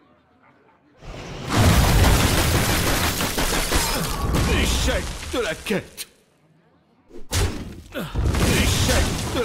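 A magic spell whooshes and crackles loudly with icy shattering sounds.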